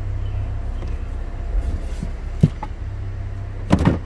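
A hand lifts a plastic panel in a car boot with a thud.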